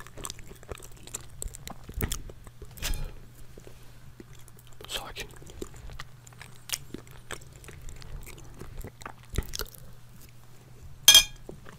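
A young man chews food with wet, crunchy sounds close to a microphone.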